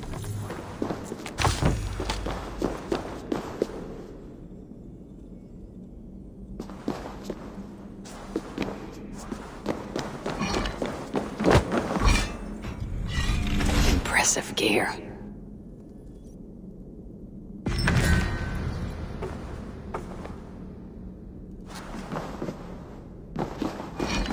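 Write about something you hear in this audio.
Metal armour clinks and rattles with each step.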